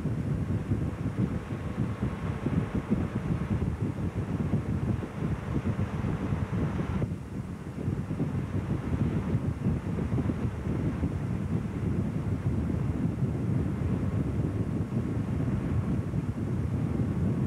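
A boat engine roars steadily close by.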